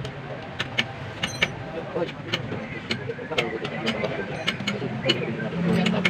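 Small metal parts click and clink.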